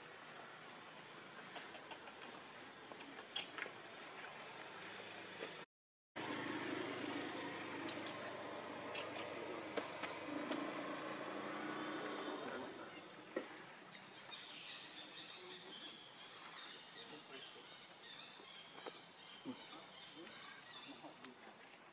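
A baby monkey squeals and cries close by.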